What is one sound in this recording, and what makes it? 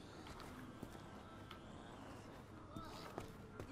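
Footsteps run across stone paving.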